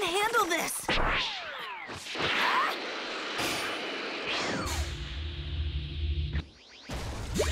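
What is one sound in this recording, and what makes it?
A loud rushing whoosh swells and roars past.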